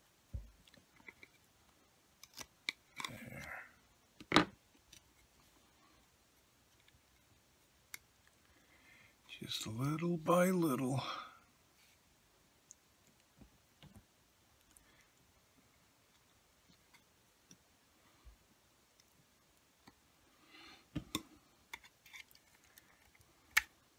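Plastic parts click and rattle as they are handled.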